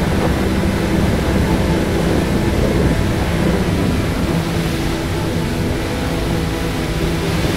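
A speedboat engine roars steadily.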